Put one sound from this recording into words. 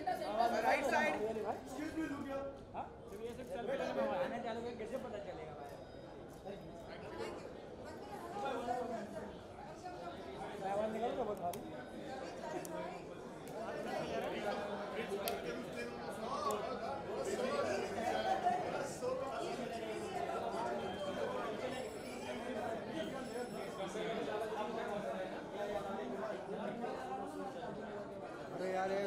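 A crowd of adults chatter and talk all around.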